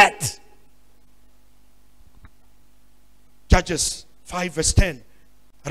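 A man speaks into a microphone in measured bursts, with pauses between phrases.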